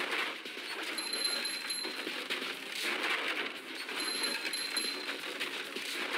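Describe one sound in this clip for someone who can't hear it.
Bright chiming tones ring out as items are collected in a video game.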